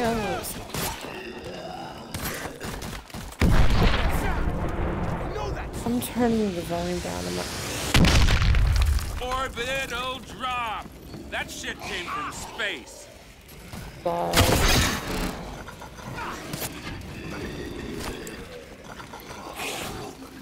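A pistol fires in sharp, rapid shots.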